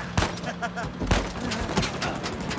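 A man laughs triumphantly.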